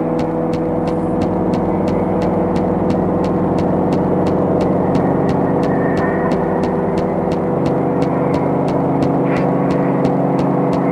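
Quick, even footsteps tap on a hard floor.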